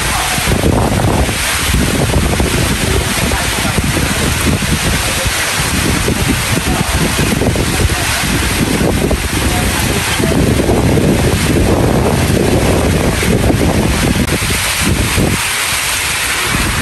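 Wind gusts and rumbles.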